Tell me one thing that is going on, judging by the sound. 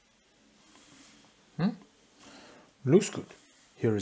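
A pen is set down on a wooden desk with a light tap.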